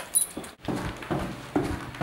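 Footsteps tap on stairs.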